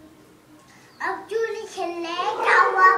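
A young boy talks loudly close by.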